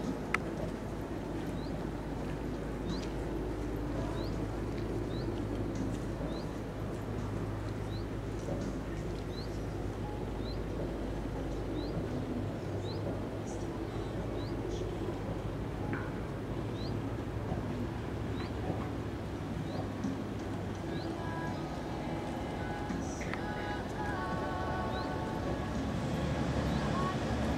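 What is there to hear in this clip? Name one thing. A horse's hooves thud softly on sand in a steady rhythm.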